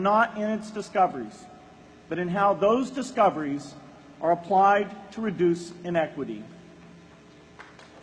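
A man speaks calmly through a loudspeaker outdoors.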